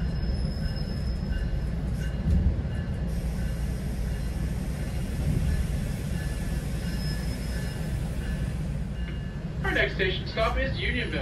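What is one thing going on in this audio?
A car drives along, with a low, steady road rumble heard from inside.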